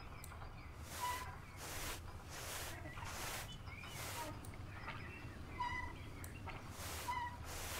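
A brush strokes a horse's coat in short swishes.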